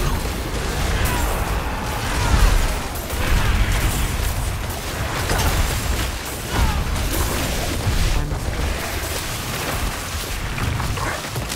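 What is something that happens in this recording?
Lightning bolts crack with sharp zaps.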